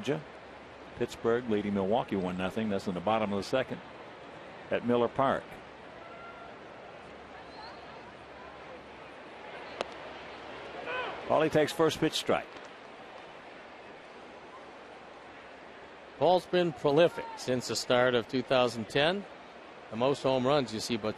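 A large crowd murmurs in an open-air stadium.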